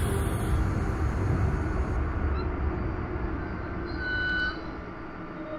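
A train rumbles along the tracks and slows to a stop.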